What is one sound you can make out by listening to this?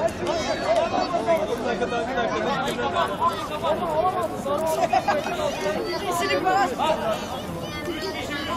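Several men argue loudly and excitedly outdoors.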